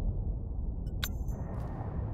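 A short electronic chime sounds as a game menu closes.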